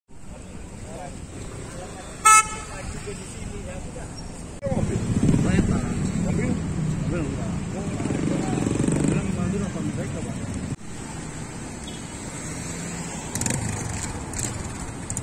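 Traffic hums along a street outdoors.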